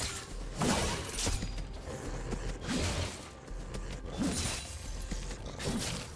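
Magic spells burst and crackle in a fast fight.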